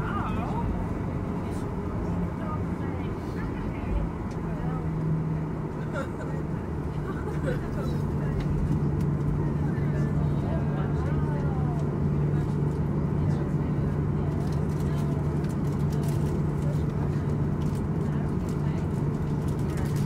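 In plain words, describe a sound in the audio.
Jet engines hum steadily from inside an airliner cabin.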